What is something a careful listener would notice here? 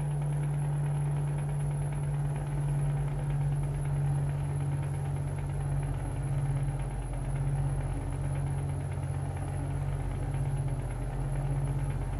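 Tyres rumble on a smooth road.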